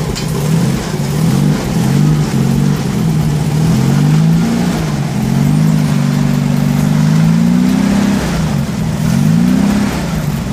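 A small engine runs close by, its pitch rising and falling as it is revved again and again.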